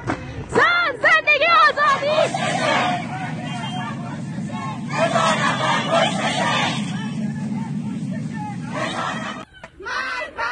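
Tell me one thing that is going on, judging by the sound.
A crowd of people chants loudly together outdoors.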